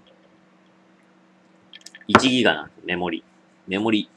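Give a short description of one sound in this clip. A glass is set down on a table with a light knock.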